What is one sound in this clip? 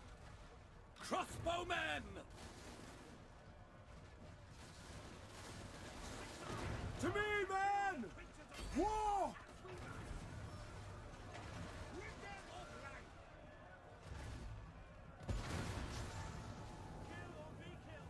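Cannons fire with dull booms.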